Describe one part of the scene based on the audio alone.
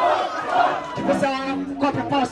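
A young man speaks into a microphone over a loudspeaker.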